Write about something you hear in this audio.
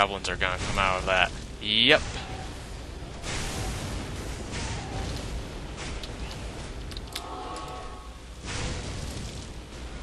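Blades clash and hit in a quick fight.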